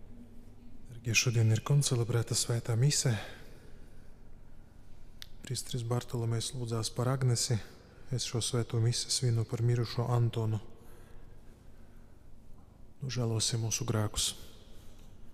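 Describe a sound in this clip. A man speaks calmly into a microphone in a large echoing hall.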